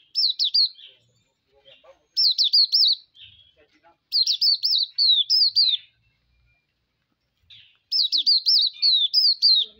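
A small bird sings in short bursts of quick, high, bright whistled notes.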